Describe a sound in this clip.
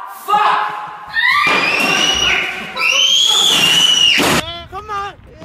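A boy shrieks loudly in an echoing room.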